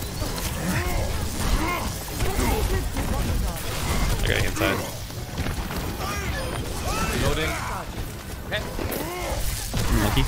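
Rapid gunfire and electric crackling bursts out in a game.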